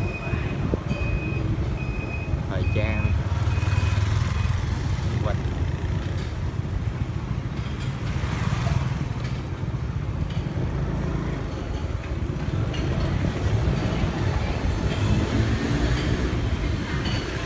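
A motorbike engine rumbles steadily close by.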